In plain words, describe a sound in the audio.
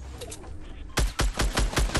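A gun fires rapid loud shots.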